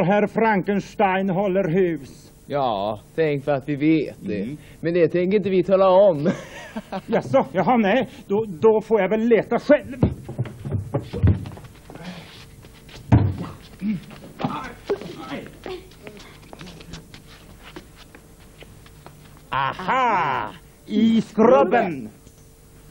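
A young woman speaks excitedly, close by.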